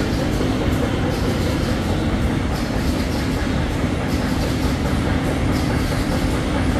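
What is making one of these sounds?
A machine hums and rattles steadily as rollers turn.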